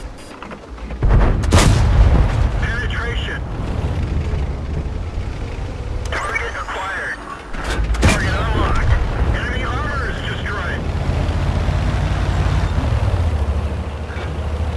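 A heavy tank engine rumbles low and steadily.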